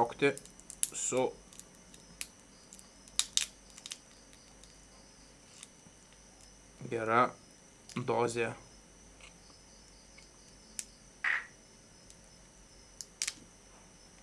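Crab shell cracks and crunches between fingers.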